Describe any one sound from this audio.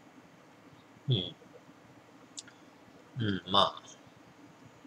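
A person gulps down a drink in a few loud swallows.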